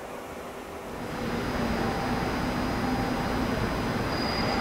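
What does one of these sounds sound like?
A train rushes past loudly nearby.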